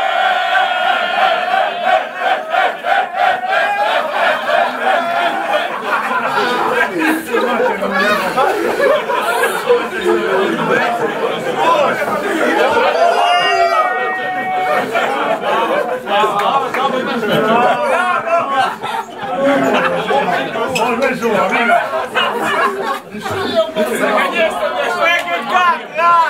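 A crowd of young men sings and chants loudly together in an echoing room.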